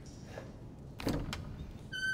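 A heavy wooden door thuds and rattles.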